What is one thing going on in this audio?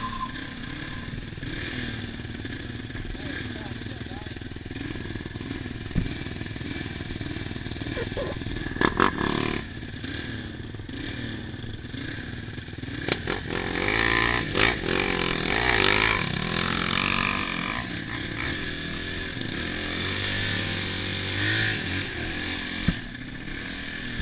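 A dirt bike engine idles and putters close by.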